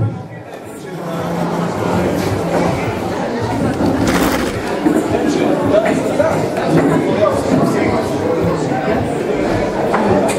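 People in a crowd murmur and chatter.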